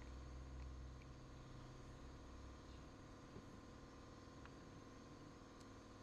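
Plastic bottles are set down on a stone countertop.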